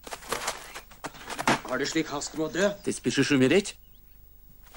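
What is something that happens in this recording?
A young man speaks urgently, close by.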